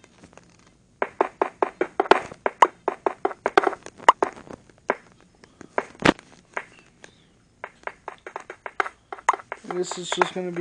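A pickaxe chips at stone with rapid, dry tapping knocks.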